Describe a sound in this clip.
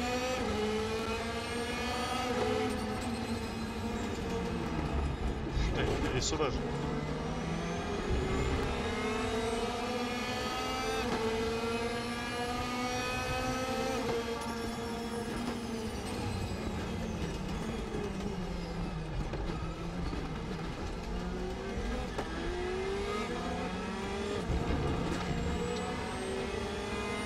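A racing car engine revs high, rising and falling as the gears shift.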